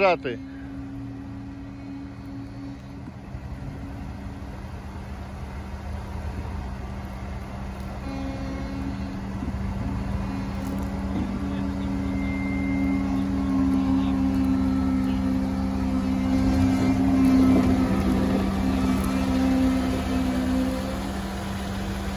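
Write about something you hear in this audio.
An off-road vehicle's engine idles and then revs as it climbs.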